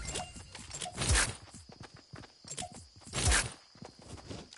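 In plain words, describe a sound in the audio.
A pickaxe strikes metal with loud, ringing clangs.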